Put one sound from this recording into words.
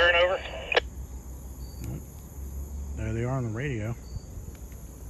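A young man speaks nearby with animation.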